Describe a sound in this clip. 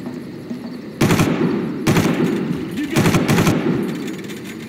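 A rifle fires loud bursts of gunshots.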